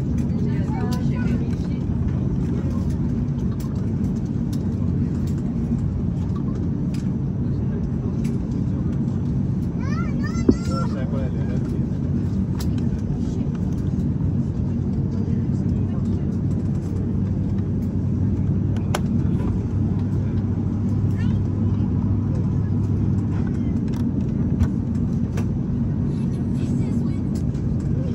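Aircraft wheels rumble over the seams of the taxiway.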